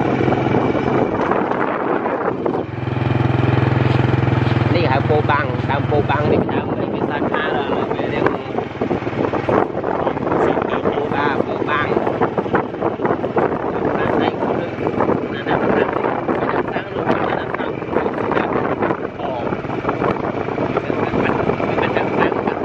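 Wind rushes past the microphone outdoors.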